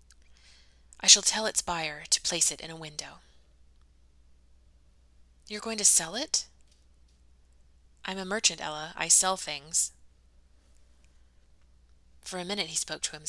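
A young woman reads aloud calmly into a close microphone, pausing between phrases.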